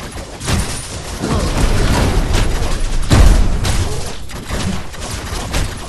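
Heavy weapons clang and thud in a close melee fight.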